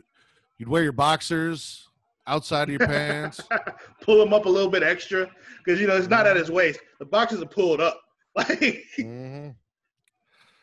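A man talks with animation through a headset microphone on an online call.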